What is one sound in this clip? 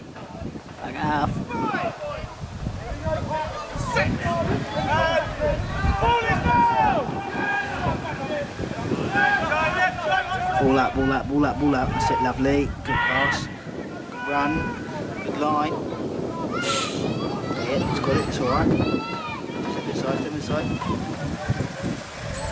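Men shout and call out loudly outdoors on an open field.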